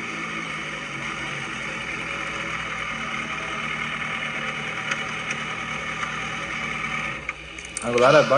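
A motorcycle engine idles with a steady rumble.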